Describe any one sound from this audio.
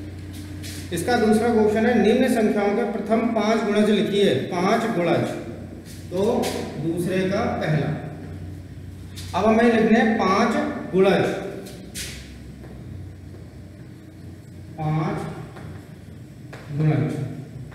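A man speaks clearly and calmly.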